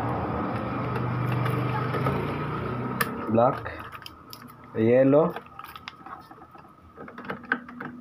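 Plastic parts of an inkjet printer click and rattle as a printhead is removed by hand.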